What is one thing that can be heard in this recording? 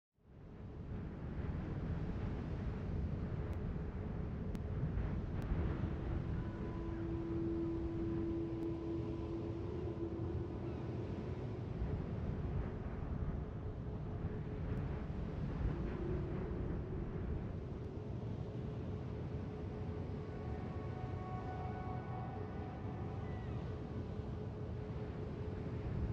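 Water rushes and splashes along a ship's hull.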